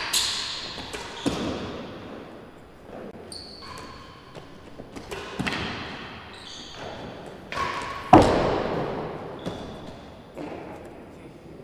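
A ball is struck hard and bangs off walls, echoing through a large hall.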